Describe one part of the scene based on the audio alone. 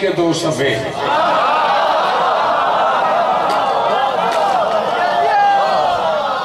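A crowd of men chants together.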